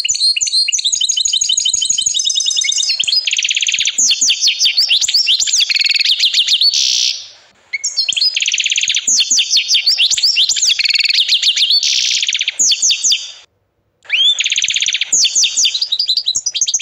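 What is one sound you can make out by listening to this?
A canary sings loud, rapid trills and rolling warbles close by.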